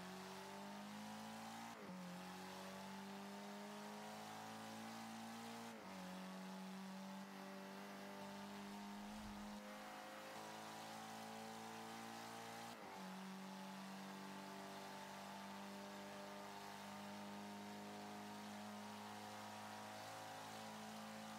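A racing car engine roars steadily, rising in pitch and dropping briefly at each gear change.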